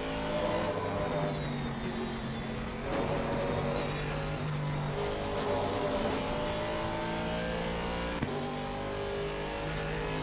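A racing car engine roars loudly, rising and falling as it shifts gears.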